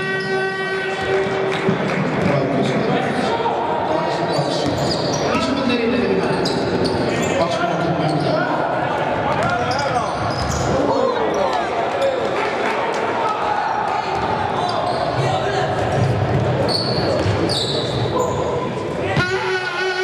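Players shout to each other in a large echoing hall.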